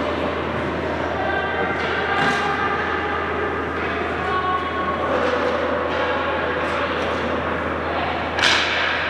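Children chatter and call out in a large echoing rink.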